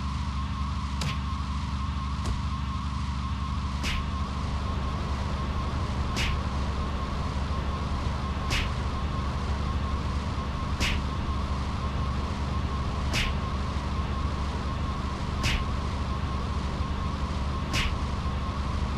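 Blows land with sharp thuds at a steady pace.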